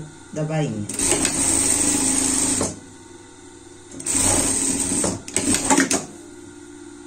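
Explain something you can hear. A sewing machine whirs as it stitches in short bursts.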